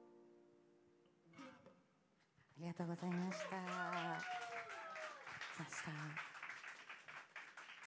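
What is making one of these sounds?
A man strums an acoustic guitar.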